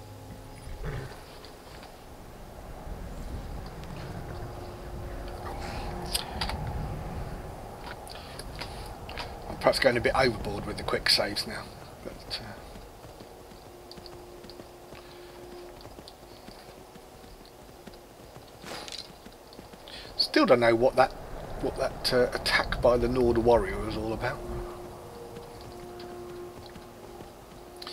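Horse hooves crunch steadily over snow and stone.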